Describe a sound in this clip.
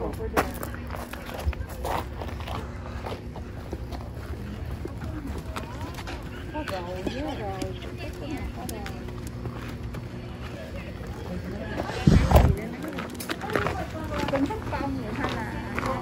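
Footsteps crunch on gravel as a person walks.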